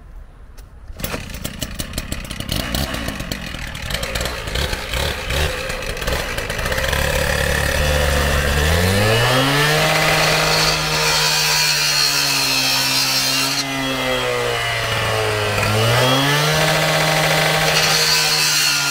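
A petrol cut-off saw engine starts with a pull and runs with a loud rattle.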